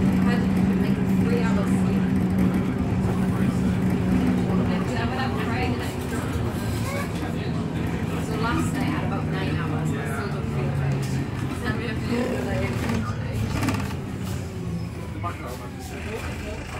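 A bus engine hums steadily while the bus drives along.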